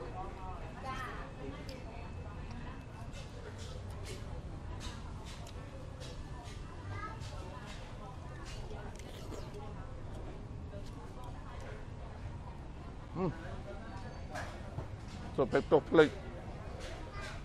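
A man eats, chewing and slurping close by.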